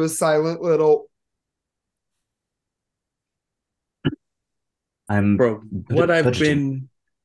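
A man speaks with animation over an online call, in short bursts.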